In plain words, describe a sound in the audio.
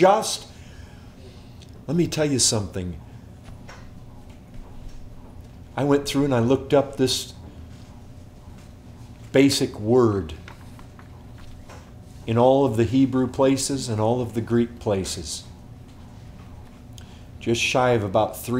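A middle-aged man speaks calmly in short bursts, close by, with pauses.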